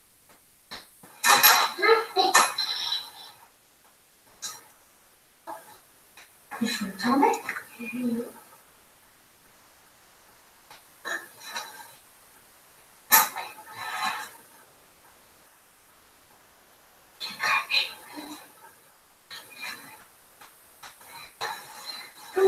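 A heavy coat rustles and flaps as a woman swings it open.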